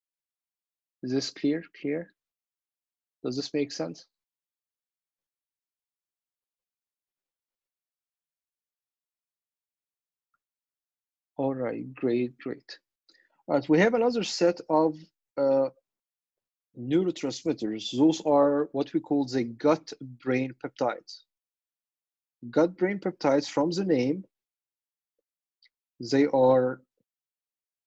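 A man speaks calmly, in pauses, heard through an online call.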